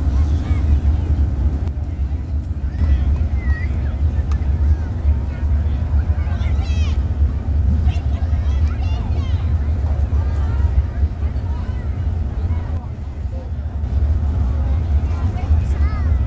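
Wind rumbles steadily across the microphone.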